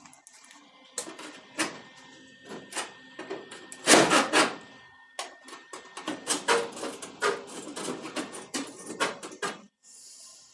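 A metal tool clinks and scrapes against sheet metal.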